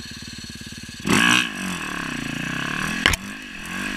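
A dirt bike engine revs up loudly and roars.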